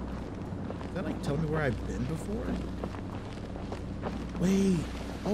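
A young man talks in short bursts into a nearby microphone.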